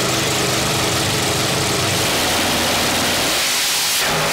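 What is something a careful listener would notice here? Race car engines idle with a deep rumble.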